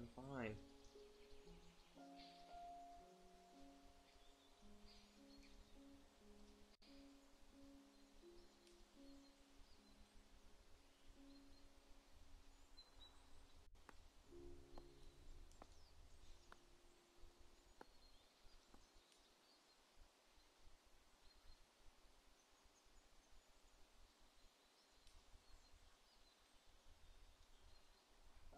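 Gentle plucked game music plays in soft steady notes.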